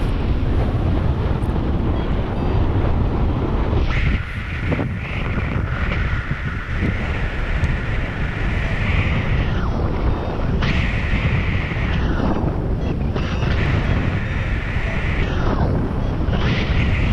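Strong wind rushes and buffets loudly past the microphone throughout.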